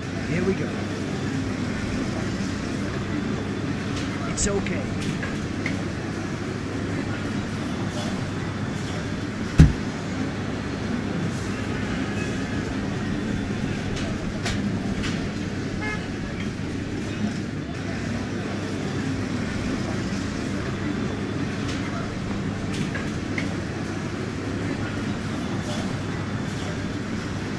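A fire engine's motor idles with a low, steady rumble.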